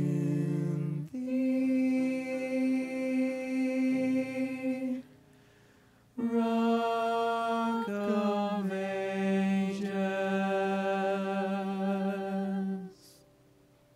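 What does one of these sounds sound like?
Young men and women sing together in close harmony through microphones, in a room with some echo.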